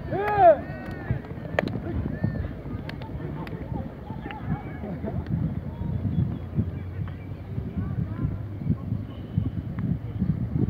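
Horses gallop with thudding hooves on dry ground.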